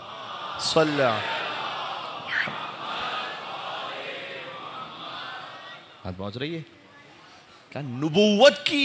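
A man speaks with feeling into a microphone, his voice echoing through a large hall.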